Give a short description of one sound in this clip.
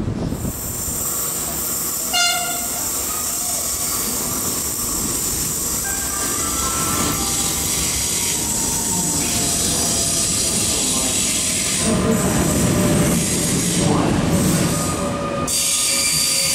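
An electric train rumbles and whines past a platform.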